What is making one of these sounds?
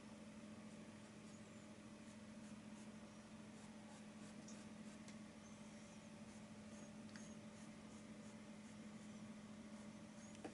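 A paintbrush brushes softly across paper in short strokes.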